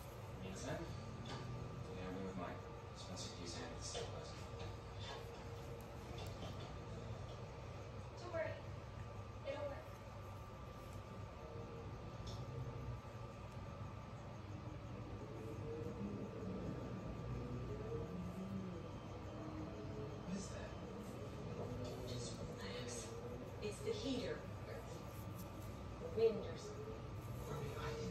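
Hands rustle and brush through hair up close.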